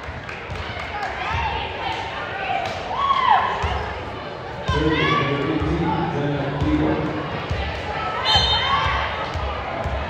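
Sneakers squeak sharply on a hard court floor in an echoing gym.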